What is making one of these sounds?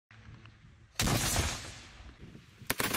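A rocket launcher fires with a sharp blast.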